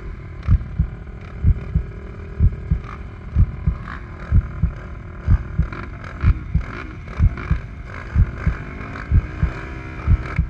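Quad bike engines idle and rumble close by.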